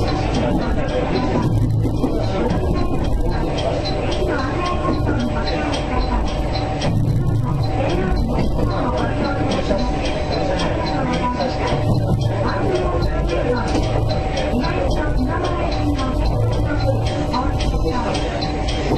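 A train rolls along the tracks with a low rumble.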